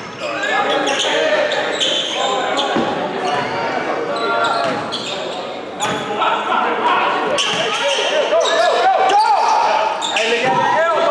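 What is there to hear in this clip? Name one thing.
Young men shout and call out across the court.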